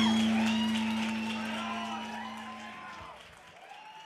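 An electric bass rings out and fades.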